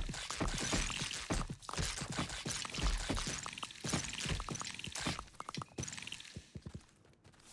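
Rain pours steadily and then stops.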